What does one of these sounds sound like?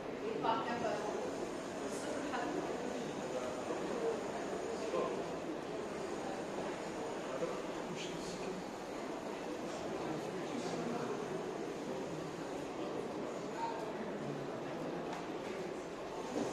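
A woman lectures calmly.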